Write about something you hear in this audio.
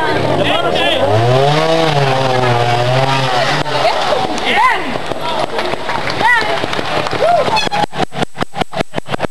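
A trial motorcycle engine revs and sputters up close.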